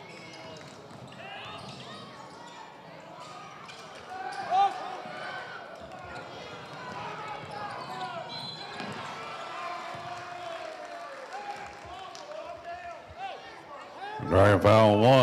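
A crowd chatters and cheers in an echoing gym.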